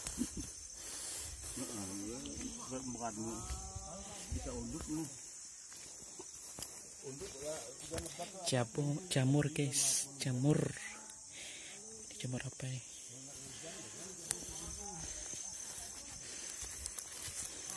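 Footsteps crunch on dry leaves and twigs.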